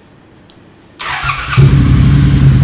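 A motorcycle engine starts up with a burst.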